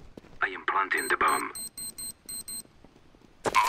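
A bomb keypad beeps in quick, evenly spaced high tones.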